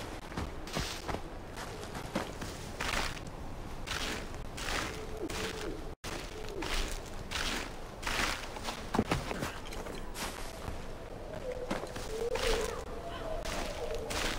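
Hands and feet scrape on rock while climbing.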